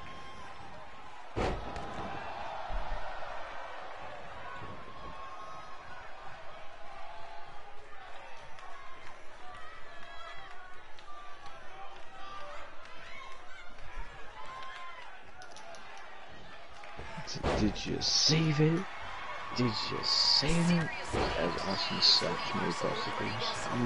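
A crowd cheers steadily in a large arena.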